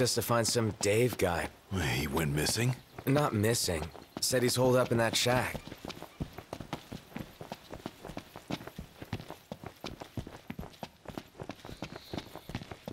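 Quick footsteps run over dry dirt.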